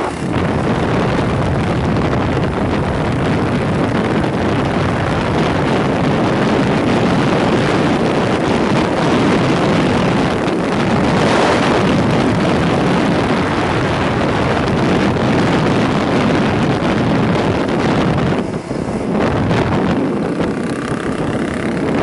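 Wind rushes loudly past a rider's helmet.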